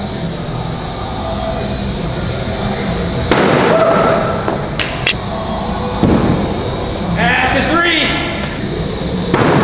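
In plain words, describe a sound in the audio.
An axe thuds into a wooden target.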